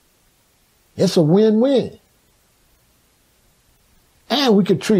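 An older man speaks slowly and calmly, close up.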